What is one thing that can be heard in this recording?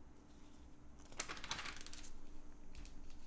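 A page of a catalogue rustles as it is turned.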